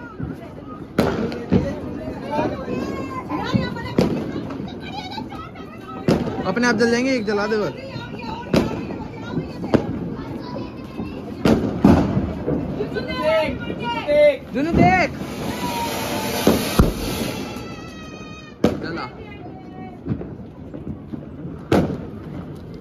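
Firecrackers bang sharply, one after another.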